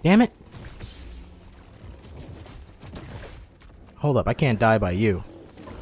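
A lightsaber hums and swishes.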